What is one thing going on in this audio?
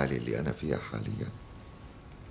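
An older man speaks calmly and closely.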